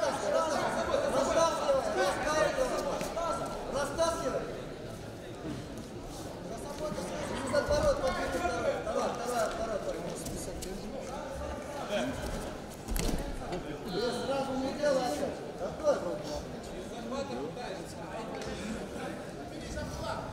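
A crowd in a large echoing hall chatters and shouts throughout.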